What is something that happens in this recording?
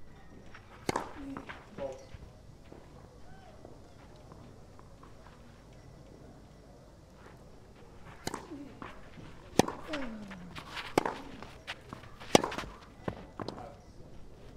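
A tennis ball is struck sharply by rackets.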